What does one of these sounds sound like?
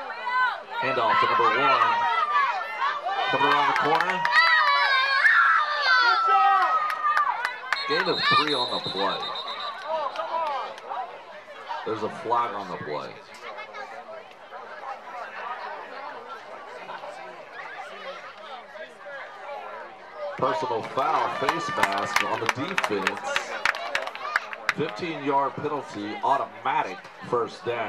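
Young girls chant a cheer loudly in unison nearby.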